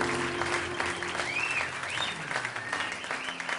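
A double bass is plucked.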